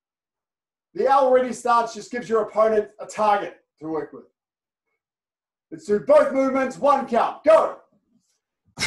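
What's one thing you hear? A man speaks calmly and clearly nearby.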